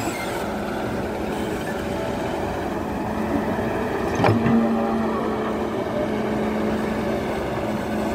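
An excavator bucket scrapes and digs into rough soil.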